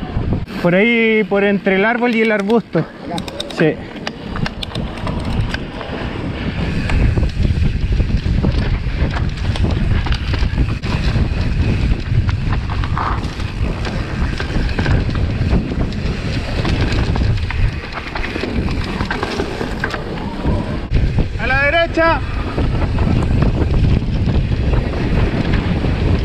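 Bicycle tyres rumble and rattle over a dirt trail.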